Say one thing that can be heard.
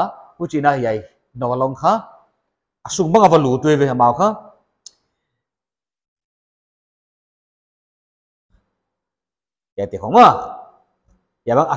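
A man speaks calmly, with long pauses.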